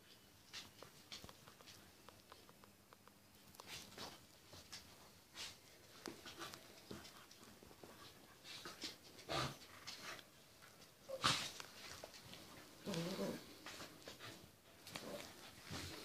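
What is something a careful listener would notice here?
Two puppies scuffle and tumble on a wooden floor.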